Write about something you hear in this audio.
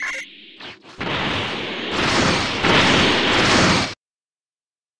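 A roaring energy blast bursts loudly.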